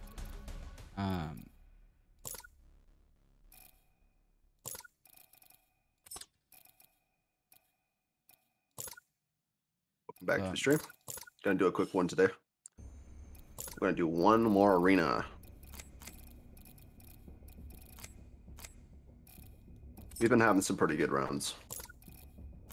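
Soft clicks sound as menu options are selected.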